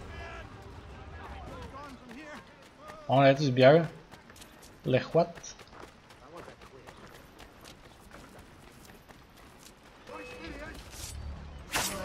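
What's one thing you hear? Footsteps run on cobblestones.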